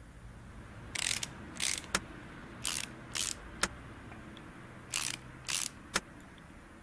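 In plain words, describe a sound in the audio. Bolts are tightened in short mechanical bursts.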